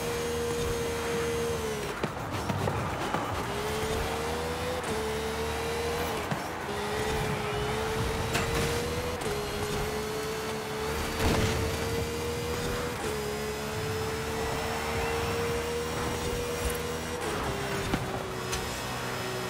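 A racing car engine roars at high revs, dropping briefly as gears shift.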